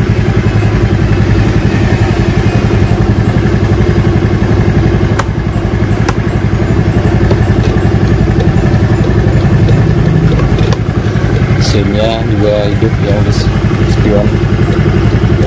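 A scooter engine idles with a steady, rapid putter close by.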